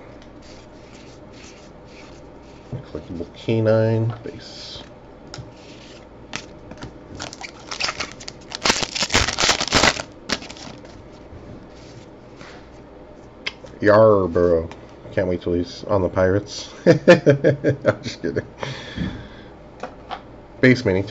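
Trading cards slide against each other.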